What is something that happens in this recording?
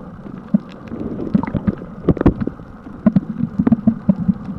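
A swimmer's legs kick and splash in the water nearby.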